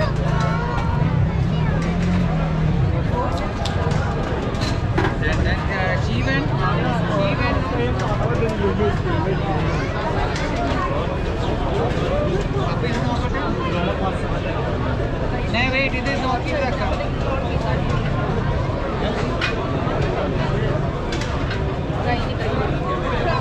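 A cook's hands tap and slap dough on a metal tray.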